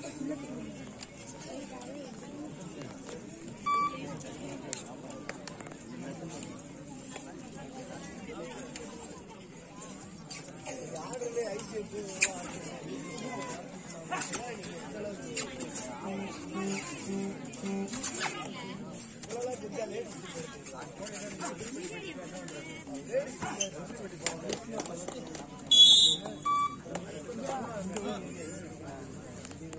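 A crowd chatters and shouts outdoors.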